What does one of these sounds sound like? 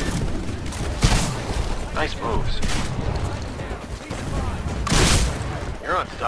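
A shotgun fires with loud, sharp blasts.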